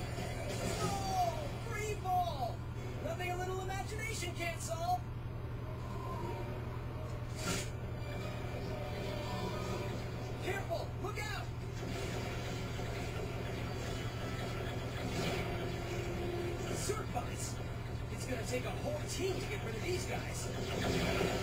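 Game music and sound effects play from a television loudspeaker.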